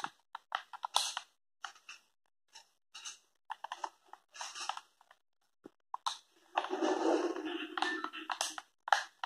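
Video game sound effects play in short bursts from a television speaker.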